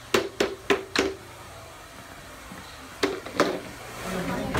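A plastic dustpan knocks against a hard floor.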